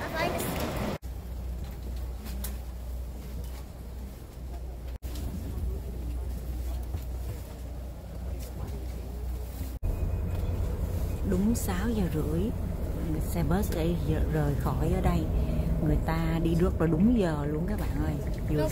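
A bus engine rumbles steadily at idle.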